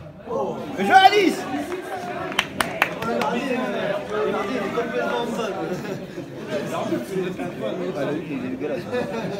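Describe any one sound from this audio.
A small crowd of men talks and calls out.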